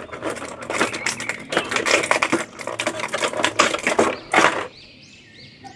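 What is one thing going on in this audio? A plastic blister tray crinkles and crackles loudly.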